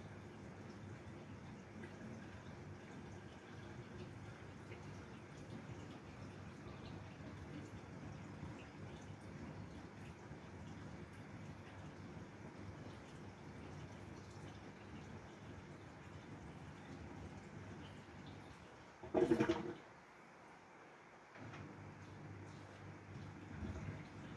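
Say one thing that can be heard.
A washing machine hums and whirs steadily.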